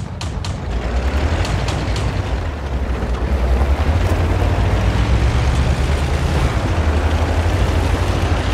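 A heavy tank engine roars louder as the tank drives off.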